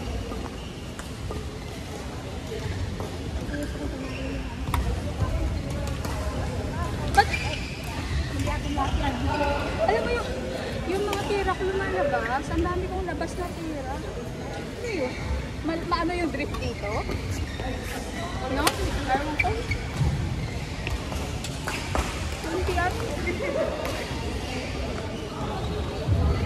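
Shuttlecocks are hit with sharp pops of badminton rackets.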